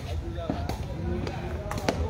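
A player's foot thumps against a ball.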